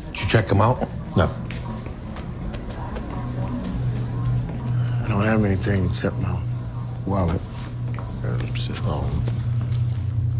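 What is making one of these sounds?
Men talk in low voices nearby.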